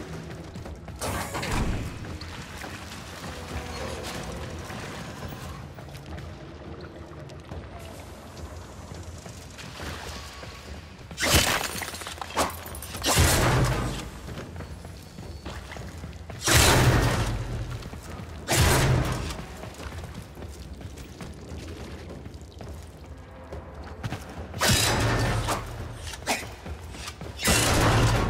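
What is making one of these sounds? A sword swishes through the air with loud crackling bursts.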